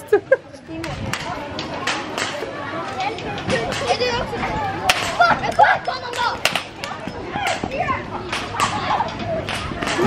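Children chatter and call out outdoors.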